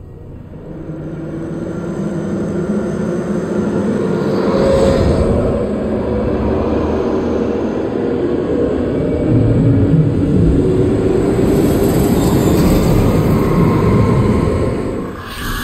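A helicopter's rotor thumps loudly overhead.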